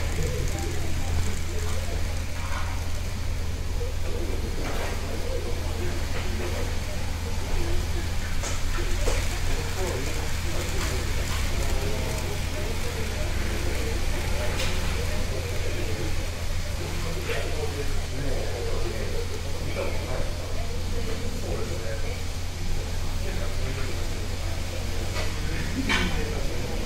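Small model trains hum and rattle steadily along their tracks.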